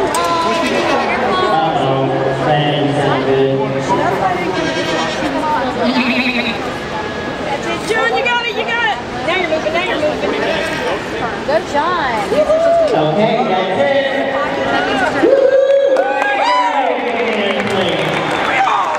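A goat bleats loudly.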